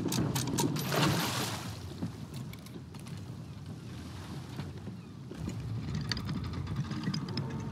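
Ocean waves wash and lap against a wooden ship.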